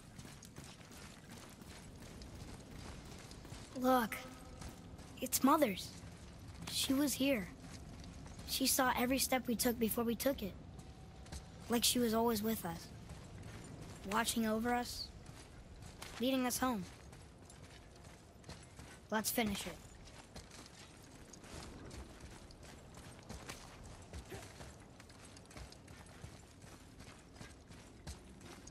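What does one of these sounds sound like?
Heavy footsteps crunch on gravel and rock.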